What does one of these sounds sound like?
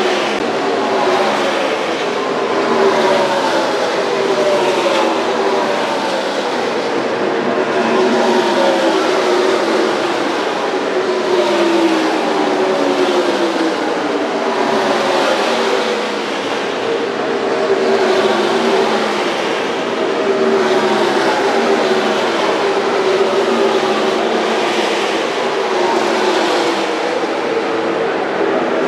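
Race car engines roar loudly as cars speed past one after another, their pitch falling as each goes by.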